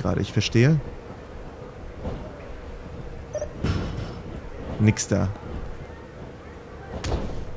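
Heavy thuds of blows land.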